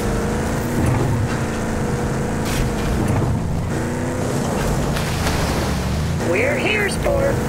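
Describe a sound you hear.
A vehicle engine roars steadily as it drives over rough ground.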